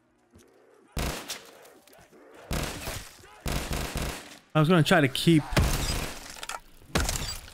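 A gun fires loud bursts of shots.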